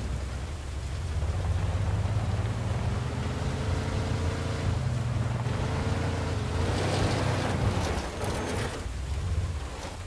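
Tyres roll and crunch over grass and gravel.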